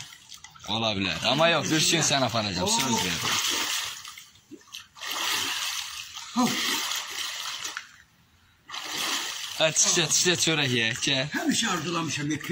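A young man talks with animation close by.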